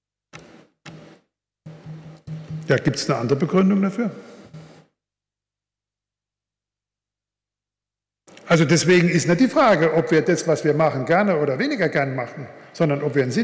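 An elderly man speaks with emphasis through a microphone in a large echoing hall.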